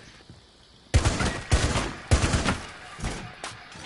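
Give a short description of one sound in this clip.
A rifle fires a quick burst of gunshots.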